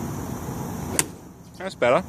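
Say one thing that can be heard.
A golf club strikes a ball with a sharp click outdoors.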